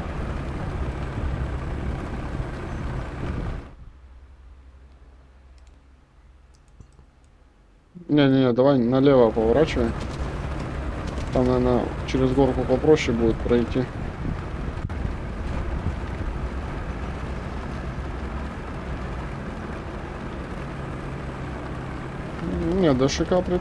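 A heavy tank engine rumbles and idles steadily.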